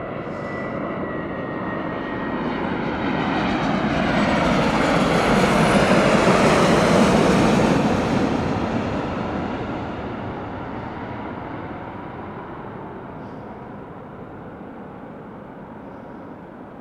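A jet airliner roars overhead, growing louder as it passes and then slowly fading away.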